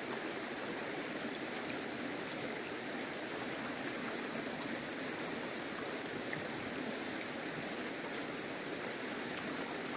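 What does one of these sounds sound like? Shallow water flows steadily over stones.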